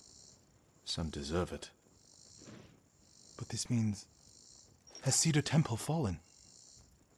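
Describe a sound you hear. A second man answers quietly and anxiously.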